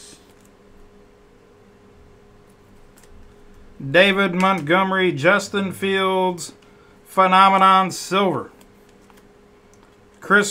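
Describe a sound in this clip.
Stiff trading cards rustle and slide against each other.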